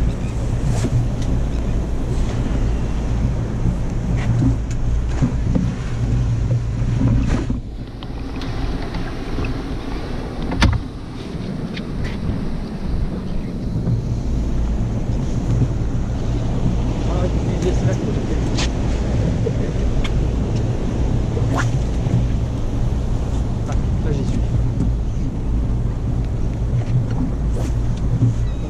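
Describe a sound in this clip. Wind buffets the microphone outdoors at sea.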